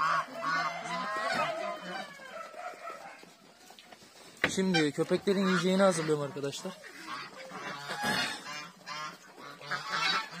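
Ducks and chickens call and quack nearby.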